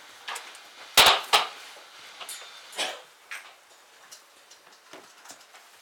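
Chairs and wooden benches knock and thud as people move.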